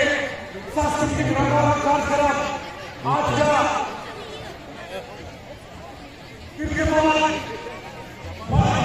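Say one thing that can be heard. A crowd of men and women sings loudly outdoors.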